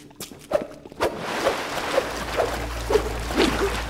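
Water pours and splashes steadily onto a stone floor.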